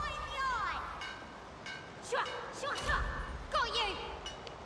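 Soft game menu chimes sound as items are selected.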